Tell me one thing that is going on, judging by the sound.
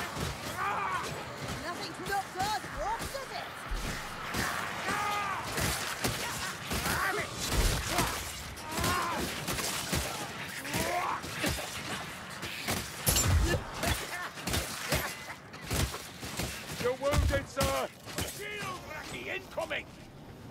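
Monsters screech and snarl.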